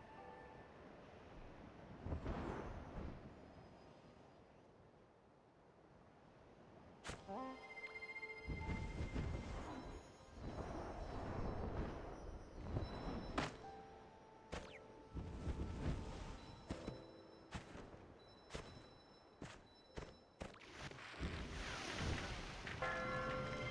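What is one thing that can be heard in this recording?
Wind rushes in swelling gusts.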